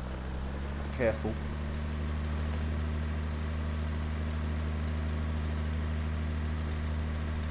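A tractor engine hums steadily at low speed.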